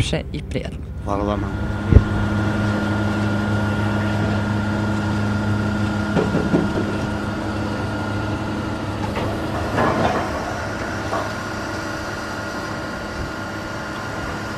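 A drilling rig's engine drones steadily outdoors.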